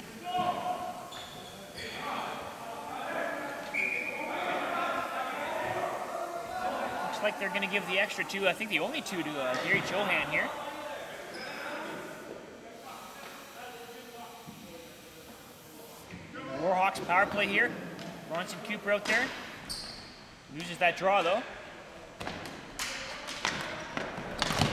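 Players shout and call out to each other in a large echoing gym.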